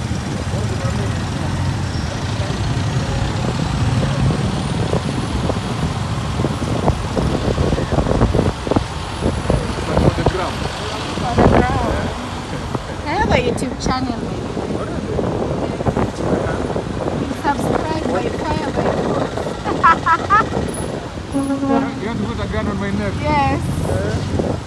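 Traffic and motorbikes pass on a busy road outdoors.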